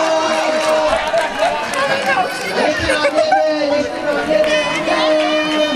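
A crowd of spectators cheers and chatters outdoors.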